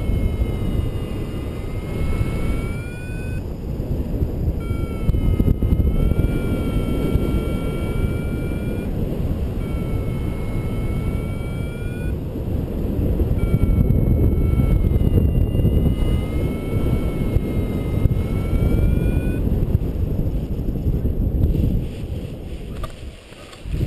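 Wind roars loudly past the microphone.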